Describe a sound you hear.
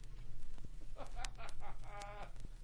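A young man shouts close by.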